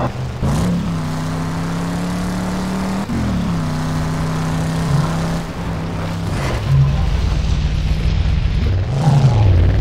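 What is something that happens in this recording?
A car engine revs and roars, shifting up through gears.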